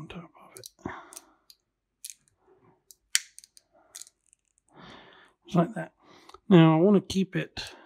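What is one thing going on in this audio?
Pliers click as they squeeze a small metal part.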